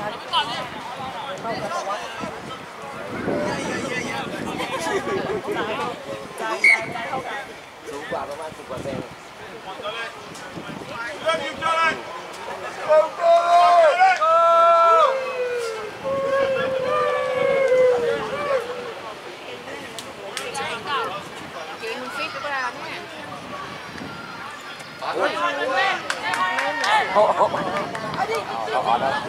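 Young players shout and call to each other outdoors across an open field.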